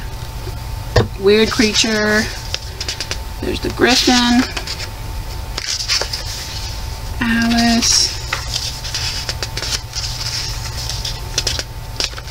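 Paper pages rustle as they are turned one after another.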